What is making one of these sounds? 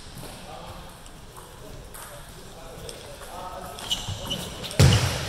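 A ping-pong ball clicks on a table and paddles.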